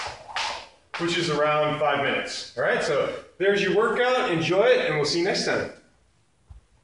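A man speaks with animation, close by, in an echoing room.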